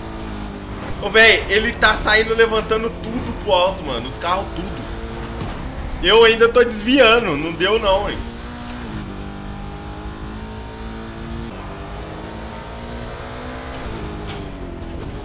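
A racing car engine roars and revs up through the gears.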